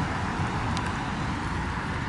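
A car drives past on a road.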